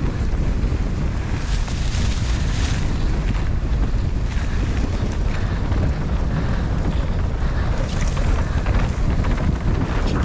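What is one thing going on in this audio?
Bicycle parts rattle over bumps.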